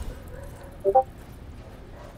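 A short electronic chime beeps twice.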